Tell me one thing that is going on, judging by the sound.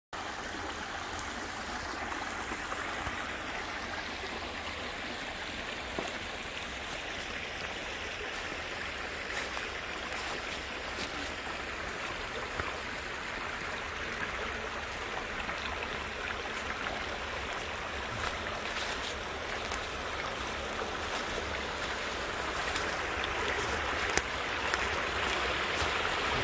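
A shallow stream trickles softly over stones.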